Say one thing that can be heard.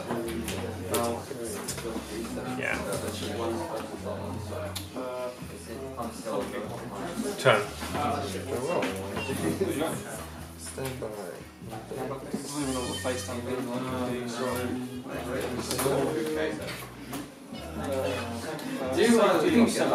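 Cards slap and slide on a table.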